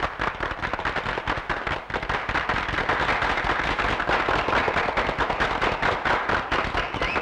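A crowd claps hands rapidly.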